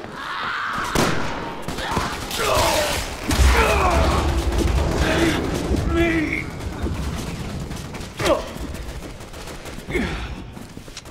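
Pistol shots ring out sharply, one at a time.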